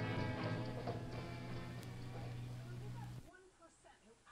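Music plays from a record player and then stops abruptly.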